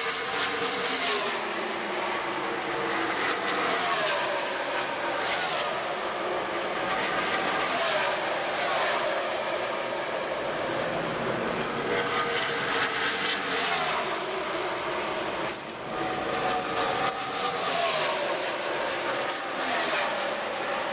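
Race car engines drop in pitch as each car passes close by.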